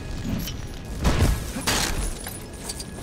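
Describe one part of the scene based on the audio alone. Objects burst apart with a loud crash.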